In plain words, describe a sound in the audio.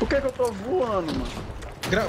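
A rifle fires a burst of gunshots.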